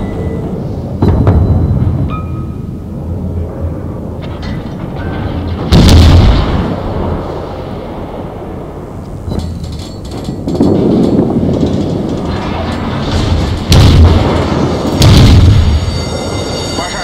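Naval guns fire with heavy booming blasts.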